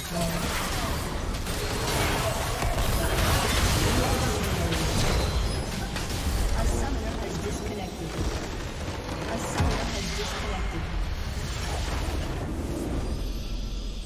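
Magic spells crackle and burst in a busy game battle.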